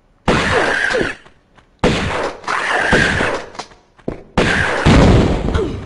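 Pistols fire rapid shots, echoing in a large hall.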